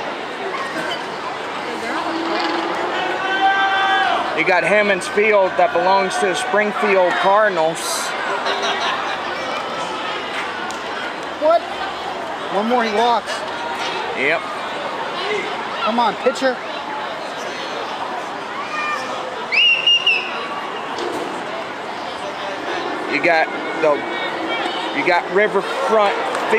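A crowd murmurs steadily in an open stadium.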